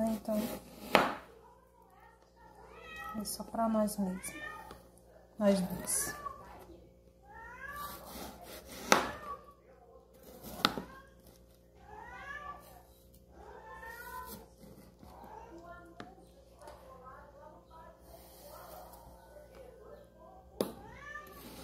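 A knife knocks sharply against a cutting board.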